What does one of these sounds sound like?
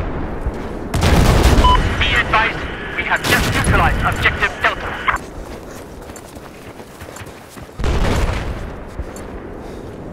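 A rifle fires bursts of shots.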